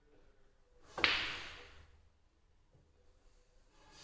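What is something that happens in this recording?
Pool balls roll and knock against the cushions.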